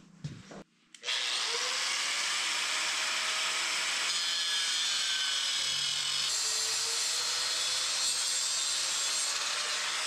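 An angle grinder whines loudly, grinding metal.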